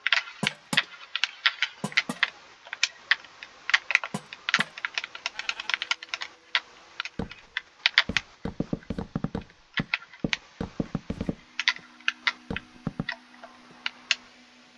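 Wooden blocks are placed one after another with short, hollow knocks in a video game.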